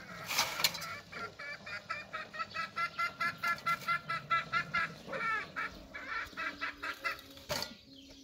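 Hens cluck rapidly nearby.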